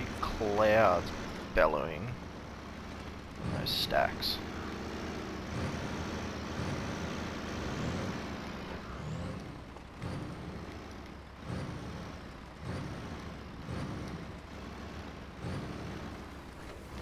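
A heavy truck engine rumbles steadily and revs now and then.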